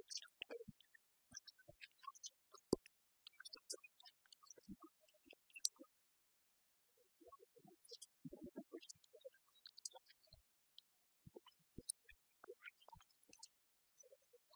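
Fingers tap softly on laptop keyboards.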